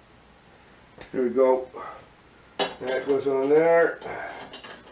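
A middle-aged man speaks nearby in a deep voice.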